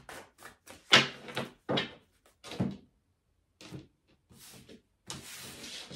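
Cards are laid down softly on a table.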